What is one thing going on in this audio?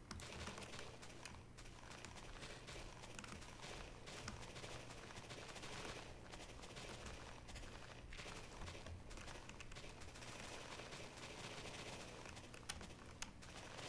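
A shovel crunches into dirt again and again.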